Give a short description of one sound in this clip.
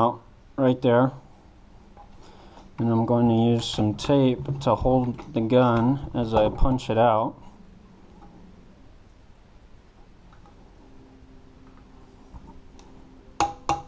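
Metal parts click and rattle as they are handled.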